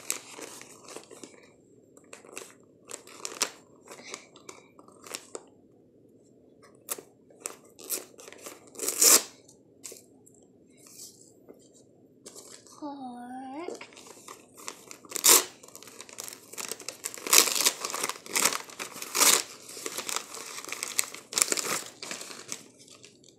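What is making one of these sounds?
Plastic wrapping crinkles and rustles as a young child tears it open.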